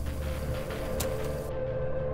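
A button on a cassette recorder clicks.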